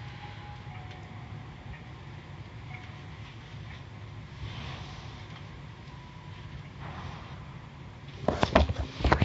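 Car wash machinery whirs and sprays water, muffled through a closed window.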